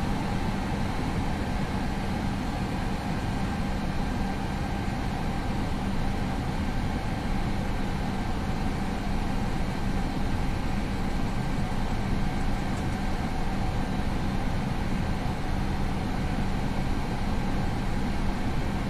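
Jet engines hum steadily at idle.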